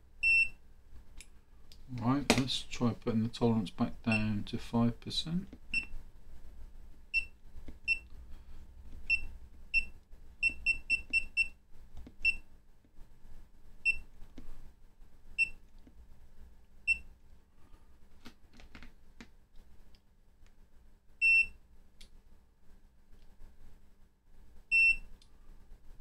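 An electronic meter gives a longer, high beep.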